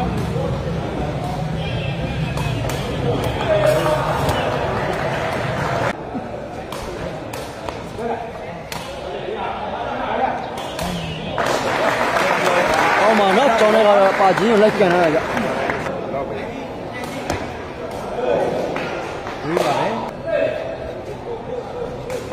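A large crowd chatters and cheers in an echoing hall.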